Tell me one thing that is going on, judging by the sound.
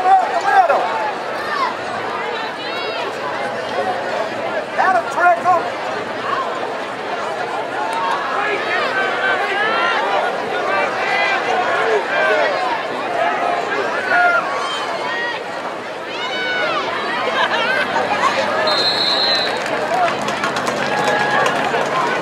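A large crowd cheers and shouts from the stands outdoors.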